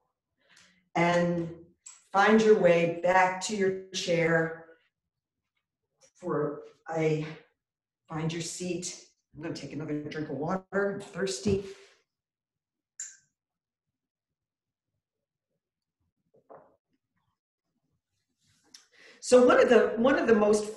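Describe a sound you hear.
An older woman speaks calmly and clearly into a nearby microphone, with pauses.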